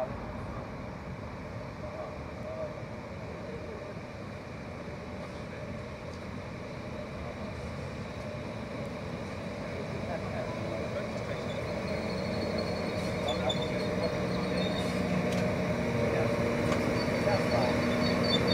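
A train approaches and rumbles louder as it pulls in.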